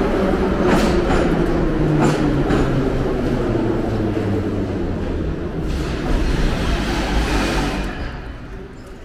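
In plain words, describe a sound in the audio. A subway train pulls in, its brakes whining lower as it slows.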